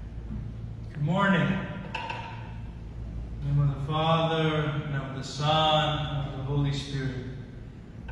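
A man chants in a slow, sung voice in a large echoing hall.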